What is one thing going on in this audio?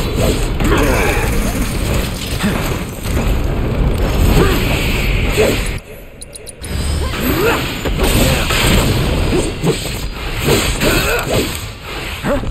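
Magic blasts burst and crackle loudly.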